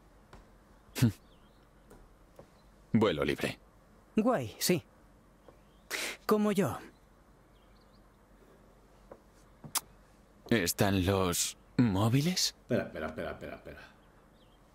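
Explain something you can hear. A second young man answers calmly, close by.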